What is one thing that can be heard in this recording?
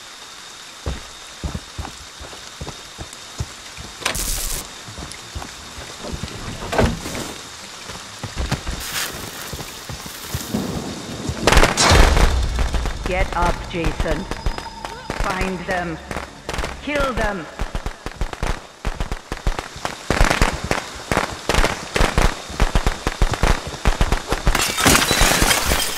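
Footsteps crunch on dirt and leaves.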